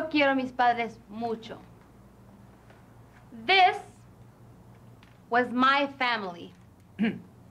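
A young woman speaks close by in an expressive, sing-song voice, with pauses between phrases.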